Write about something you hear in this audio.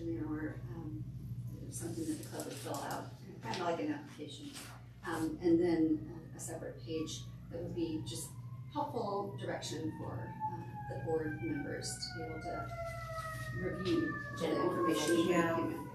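A woman speaks calmly nearby, reading aloud.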